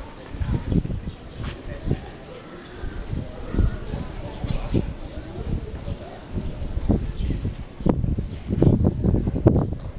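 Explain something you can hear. Young girls chatter quietly nearby outdoors.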